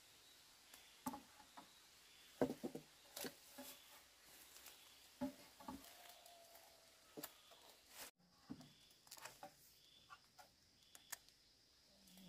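Bamboo poles thud as they are set down on the ground.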